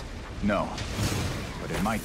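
Glass shatters with a sharp burst.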